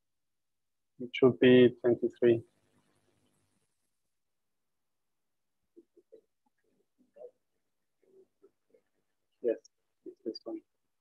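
A man speaks through a microphone, in short bursts with long pauses.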